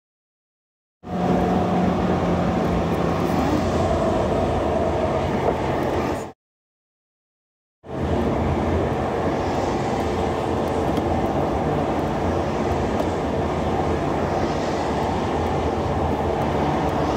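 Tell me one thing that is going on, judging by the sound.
Tyres hum and rumble steadily on a paved road.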